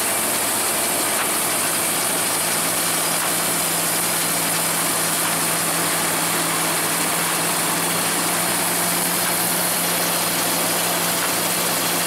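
Cut wheat stalks rustle and crackle through the harvester.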